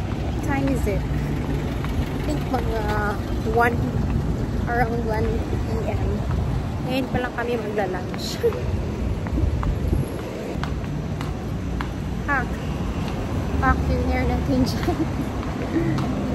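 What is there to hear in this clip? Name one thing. A young woman talks casually, close by.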